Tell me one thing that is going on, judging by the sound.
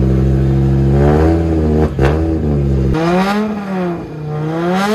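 A rally car engine revs up and down sharply.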